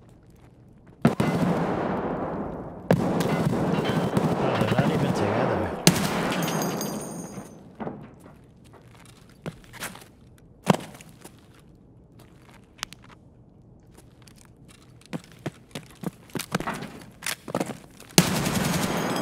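Gunshots crack and echo loudly.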